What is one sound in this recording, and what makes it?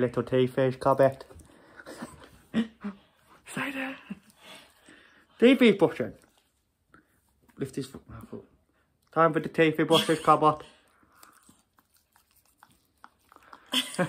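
A toothbrush scrubs a dog's teeth.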